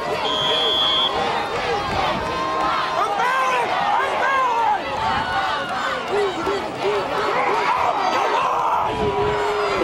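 A crowd of spectators cheers and shouts from the stands outdoors.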